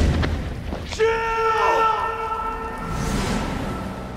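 A man shouts out a long, desperate cry.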